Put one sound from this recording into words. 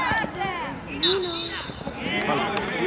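A referee's whistle blows once.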